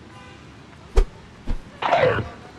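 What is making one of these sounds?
A dog's bite lands with a sharp thud.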